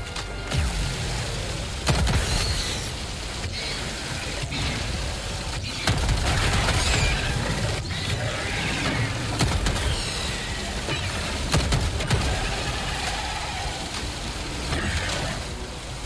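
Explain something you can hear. Explosions boom and rumble close by.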